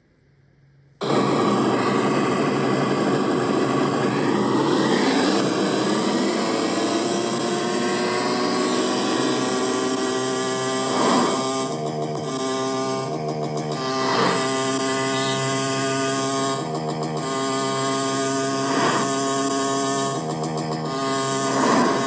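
A motorbike engine revs and roars steadily.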